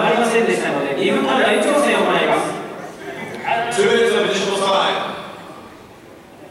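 A crowd cheers loudly, heard through a television speaker.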